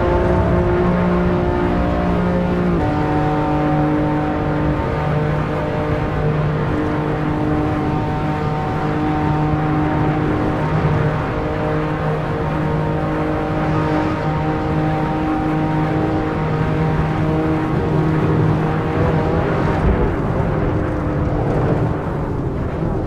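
A racing car engine roars at high revs, shifting up through the gears.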